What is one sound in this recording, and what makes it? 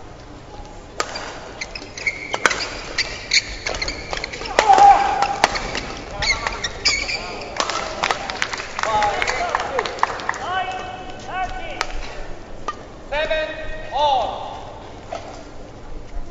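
Badminton rackets hit a shuttlecock back and forth.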